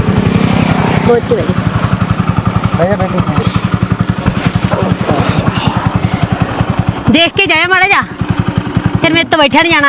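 A motorcycle engine idles with a steady, rapid putter.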